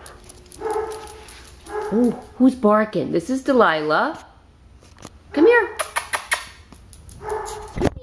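A dog's paws patter on a hard floor.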